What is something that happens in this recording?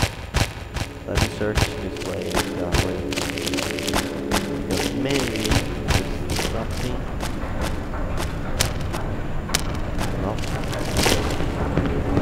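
Footsteps thud along in quick succession.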